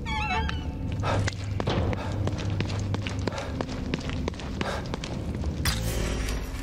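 Footsteps hurry across a hard floor.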